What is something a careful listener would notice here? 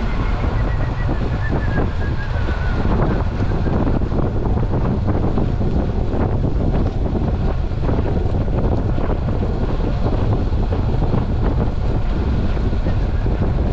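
Wind rushes loudly past, outdoors.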